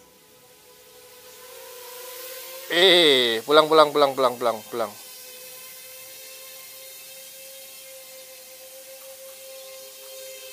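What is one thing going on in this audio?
A small drone's motors whine steadily as it flies close by.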